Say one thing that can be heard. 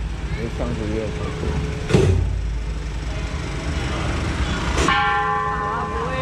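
A van engine idles close by.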